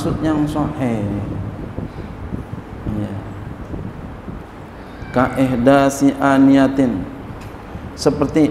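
A man speaks calmly into a microphone, in a slow chanting voice, with pauses.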